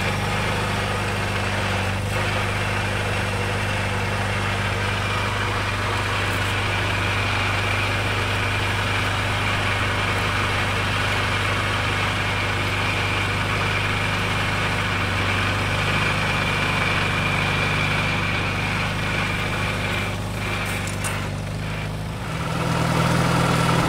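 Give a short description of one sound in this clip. A small tractor engine chugs steadily close by.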